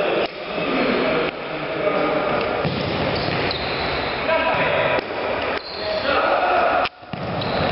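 A ball is kicked with dull thuds in a large echoing hall.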